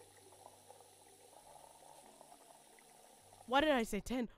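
Water pours from a tap into a pot.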